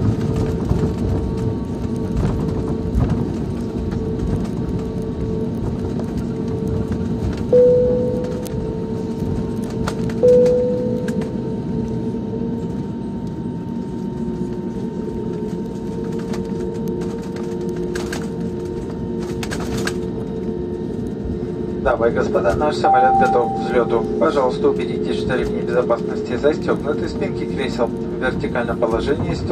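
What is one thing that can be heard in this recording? Aircraft wheels rumble and thump over the runway.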